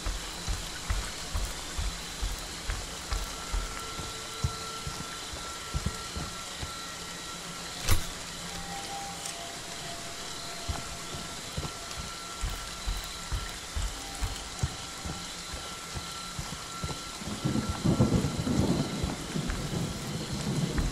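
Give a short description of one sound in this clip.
Rain falls with a light, steady patter.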